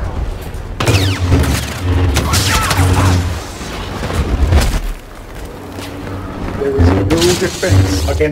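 A lightsaber hums and swooshes as it swings.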